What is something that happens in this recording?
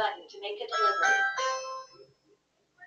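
A doorbell chimes.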